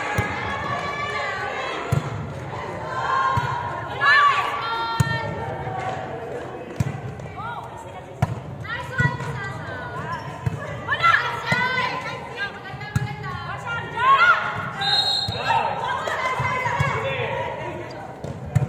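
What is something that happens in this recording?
Young women call out and shout during play in a large echoing hall.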